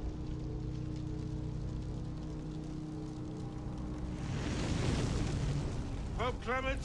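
A fire crackles and roars as it flares up.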